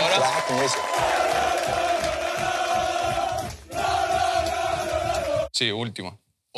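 A crowd of young men chants and sings loudly together.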